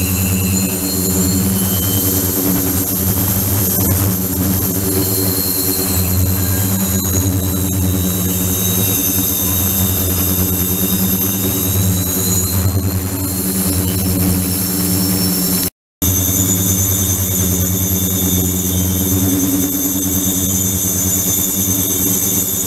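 A machine hums and rattles steadily.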